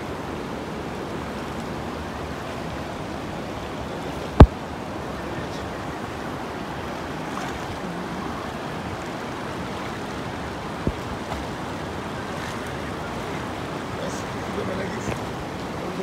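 Water splashes around feet wading through a current.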